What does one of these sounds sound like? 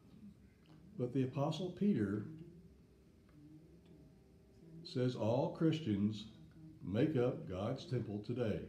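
An elderly man speaks calmly, lecturing to an audience.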